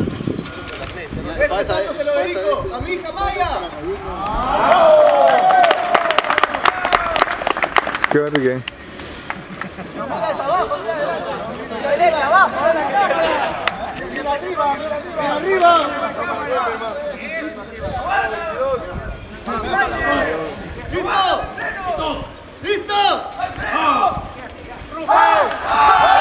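A young man talks and shouts excitedly outdoors.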